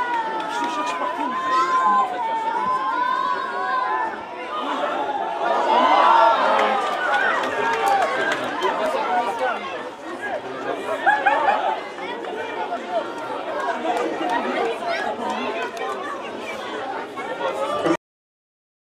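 Men shout and cheer across an open outdoor field.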